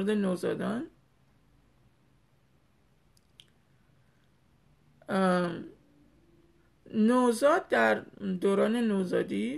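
A woman speaks close to a microphone, calmly and with pauses.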